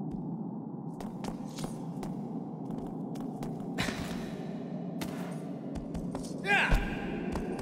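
Hooves clop on stone as a horse walks.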